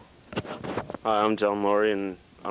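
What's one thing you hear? A young man sings a sustained, wavering note loudly and close by.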